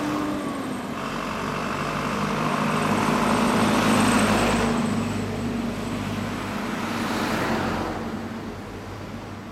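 A truck drives past with a loud, rising then fading rush.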